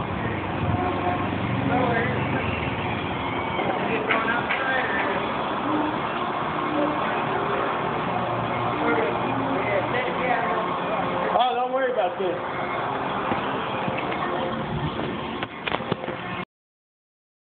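A crowd of people talks in a busy public space.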